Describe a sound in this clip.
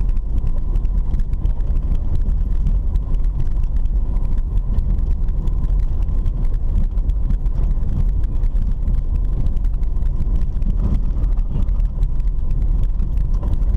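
Tyres rumble and crunch over a rough dirt road.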